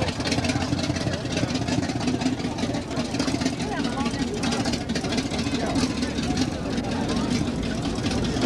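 A crowd of people chatters outdoors.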